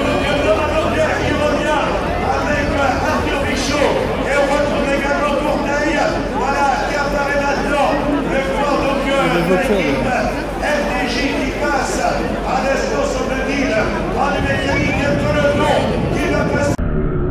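A large outdoor crowd of spectators chatters.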